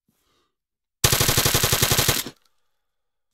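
A machine gun fires a rapid burst close by.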